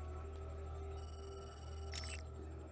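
An electronic scanner beeps and whirs.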